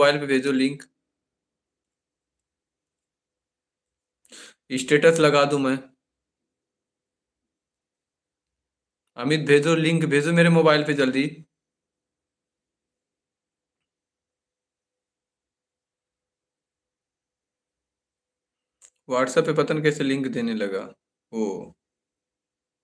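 A man speaks calmly and close by, in short bursts with long pauses.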